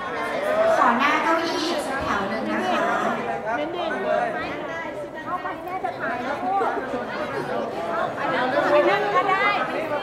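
A woman calls out instructions to the group.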